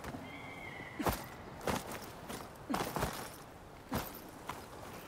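Footsteps thud quickly on soft ground.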